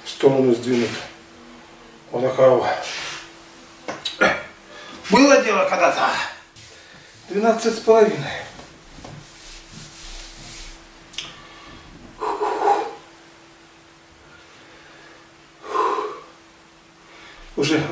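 An elderly man talks calmly close by, in short bursts with pauses.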